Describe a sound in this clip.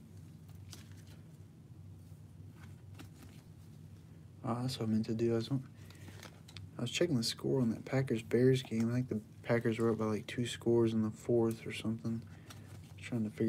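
Trading cards rustle and slide softly as a hand handles them.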